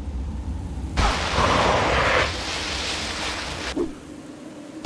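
Sand hisses and scrapes under a sliding body.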